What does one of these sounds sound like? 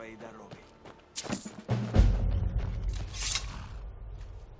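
A sword swings and clangs with a metallic ring.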